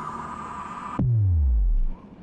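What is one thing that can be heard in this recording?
A low magical whoosh sweeps down as a shard is grabbed.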